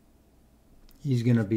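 A man speaks up close to a microphone.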